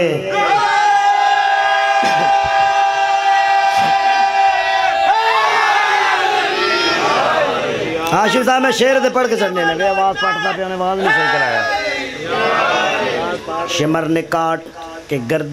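A man chants and sings loudly and with emotion through a microphone and loudspeakers.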